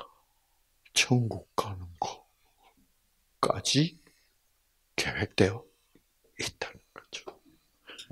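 An elderly man speaks with animation into a microphone, in bursts with pauses.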